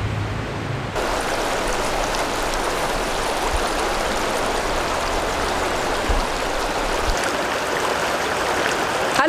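A river rushes steadily over stones.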